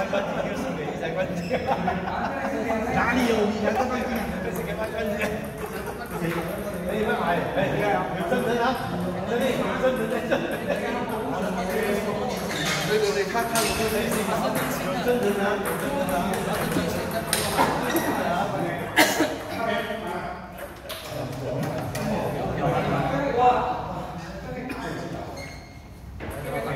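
Men talk in the background.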